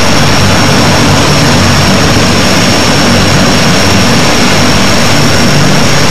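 Propeller engines roar loudly and steadily as a large plane takes off.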